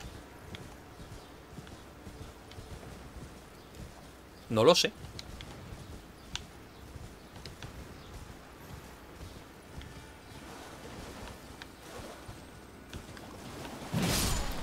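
Footsteps rustle through grass and shallow water.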